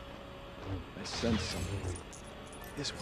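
A lightsaber hums and swooshes as it swings.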